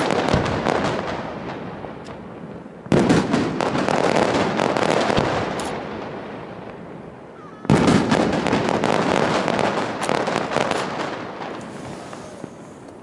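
Fireworks crackle and sizzle as sparks fall.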